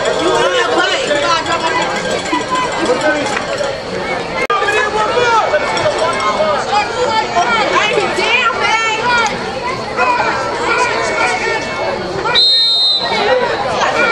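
A crowd of spectators shouts and cheers nearby, outdoors.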